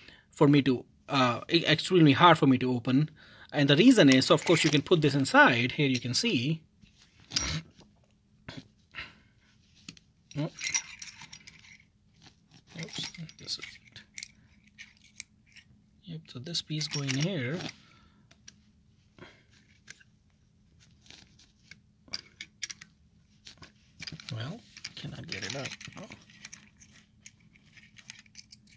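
Small metal parts click and scrape as they are handled.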